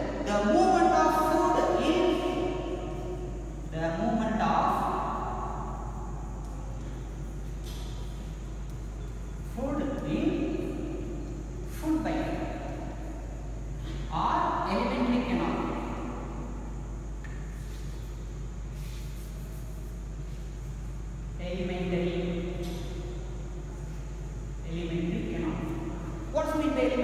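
A man speaks calmly, as if teaching, close by.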